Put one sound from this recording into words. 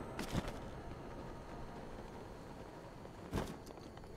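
A cloth glider flaps in the wind.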